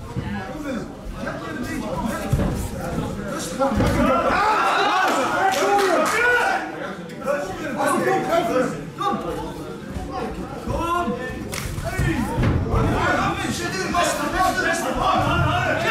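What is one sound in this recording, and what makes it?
Gloved punches and kicks thud against bodies.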